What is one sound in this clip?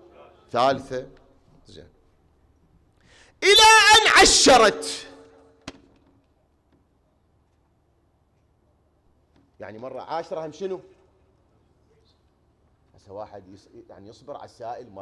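A man speaks with animation through a microphone in an echoing hall.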